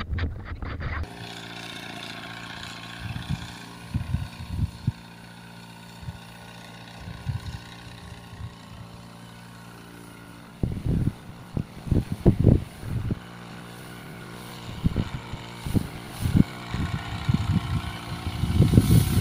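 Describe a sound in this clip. A motor sprayer engine hums steadily outdoors.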